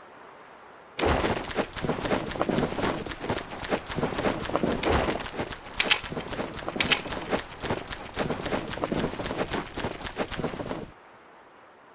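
Heavy blows and scuffling clatter in a struggle.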